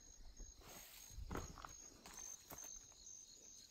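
Leafy branches rustle as they brush past close by.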